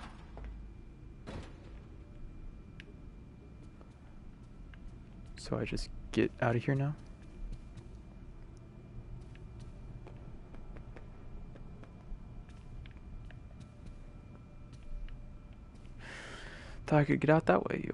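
Footsteps tread slowly across a hard floor.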